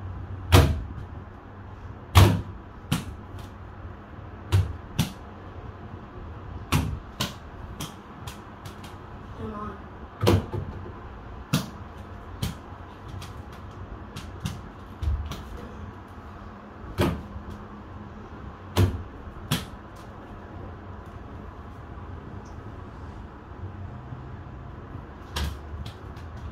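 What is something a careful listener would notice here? A ball bounces on a hard floor with sharp thuds.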